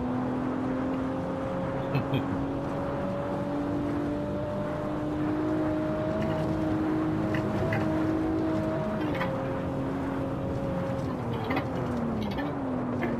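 Tyres rumble and hiss on the road.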